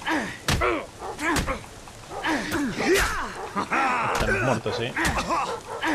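A man shouts angrily at close range.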